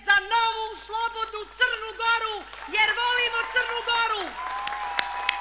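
A woman sings emotionally into a microphone over loudspeakers.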